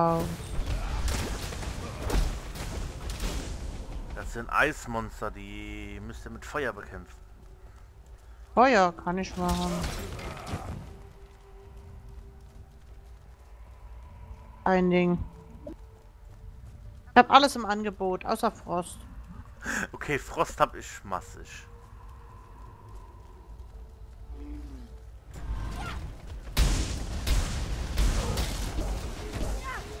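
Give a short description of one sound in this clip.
Fiery spell effects burst and crackle in a fight.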